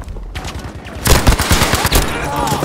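An automatic rifle fires a rapid burst of shots.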